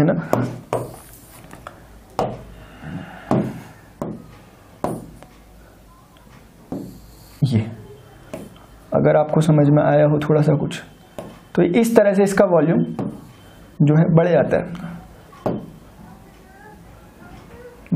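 A marker squeaks and taps against a board.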